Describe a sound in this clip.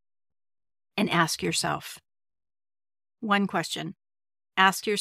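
A woman speaks calmly and clearly into a close microphone, in short phrases with pauses.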